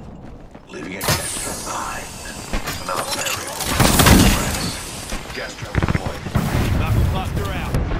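Gunshots fire in rapid bursts close by.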